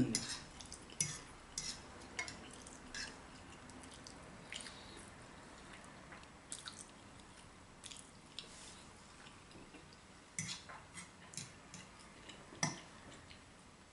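A fork clinks against a pan.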